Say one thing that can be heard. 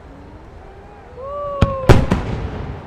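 A firework rocket whistles as it climbs.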